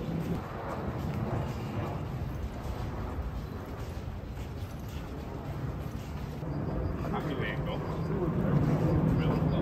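Footsteps walk along a paved street.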